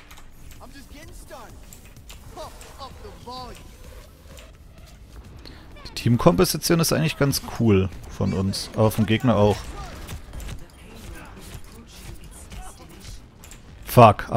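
A video game weapon fires rapid energy shots with sharp bursts.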